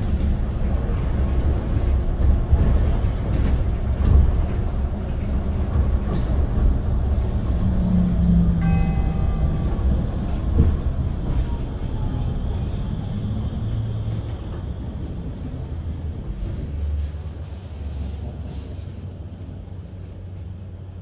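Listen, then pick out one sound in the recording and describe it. A vehicle's engine rumbles low and steady while driving through a street.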